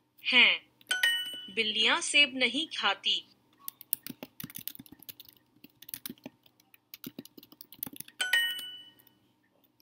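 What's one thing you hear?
An electronic chime rings brightly.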